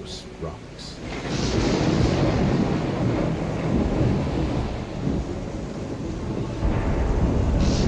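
Thunder rumbles loudly.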